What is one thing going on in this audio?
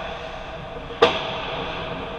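A puck thuds sharply against the boards.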